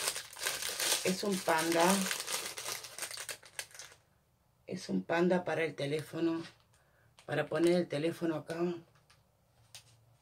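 A plastic wrapper crinkles in a woman's hands.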